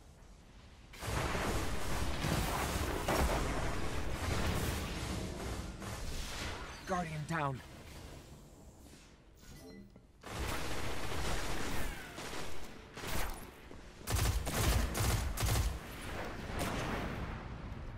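Gunfire from a video game cracks in bursts.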